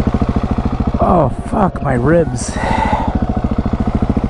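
A dirt bike engine revs up and down.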